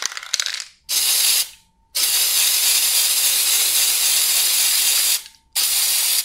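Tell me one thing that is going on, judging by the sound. An aerosol spray can hisses in steady bursts.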